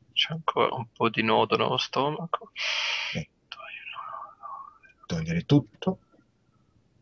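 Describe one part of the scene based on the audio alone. A man speaks through an online call.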